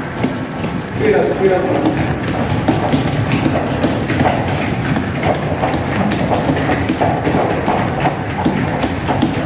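A group of people shuffle and stamp their feet on the floor.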